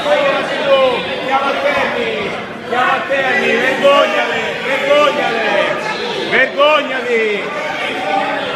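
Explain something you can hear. A man nearby shouts with animation.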